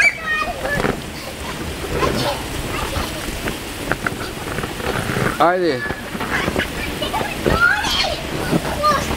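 A young child shouts and squeals excitedly nearby.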